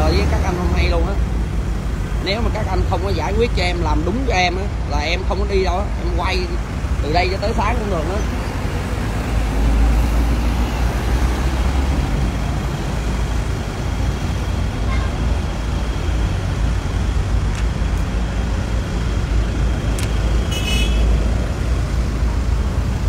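Traffic rumbles steadily past on a nearby road.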